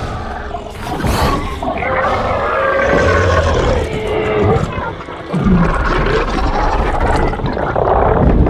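Plastic toy parts click and creak softly as hands bend them.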